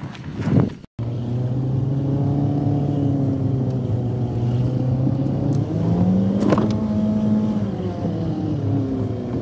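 A car engine hums and revs steadily from inside a moving car.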